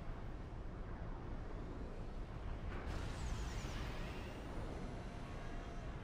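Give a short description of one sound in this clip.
Laser weapons zap and crackle in rapid bursts.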